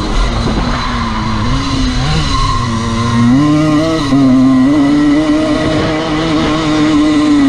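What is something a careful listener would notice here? Another dirt bike engine buzzes nearby.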